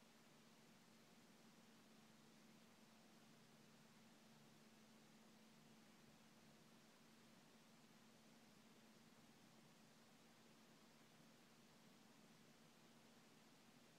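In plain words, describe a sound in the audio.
A laptop computer hums faintly and steadily.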